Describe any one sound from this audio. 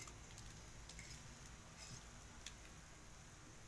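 A fork clinks against a metal pan.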